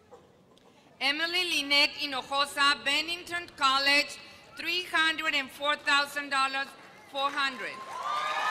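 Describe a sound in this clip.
A woman reads out through a microphone in a large hall.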